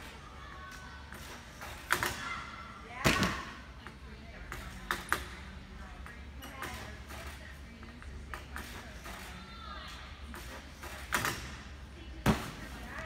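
A metal bar creaks and rattles as a gymnast swings on it.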